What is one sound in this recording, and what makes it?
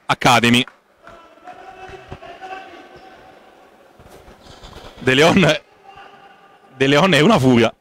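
Young men chatter faintly in a large echoing gym.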